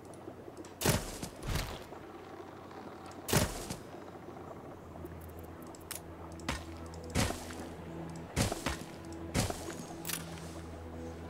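Short soft thuds and whooshes sound as buildings are set down, now and then.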